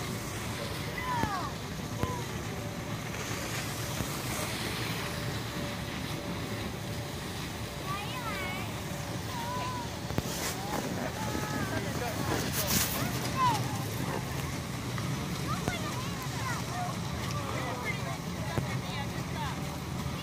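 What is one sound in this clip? Skis slide over snow.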